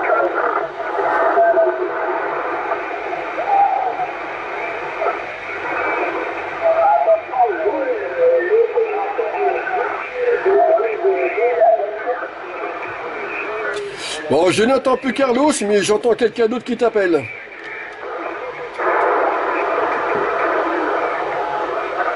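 A man talks over a radio link, heard through a crackly loudspeaker.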